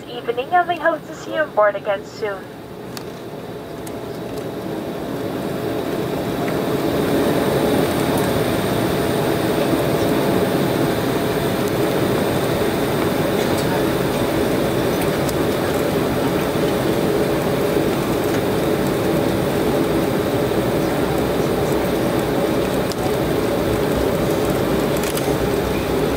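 Tyres rumble over a runway.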